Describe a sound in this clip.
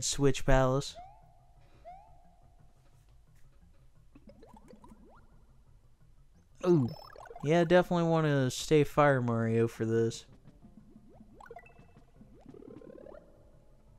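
Soft electronic game sound effects blip now and then.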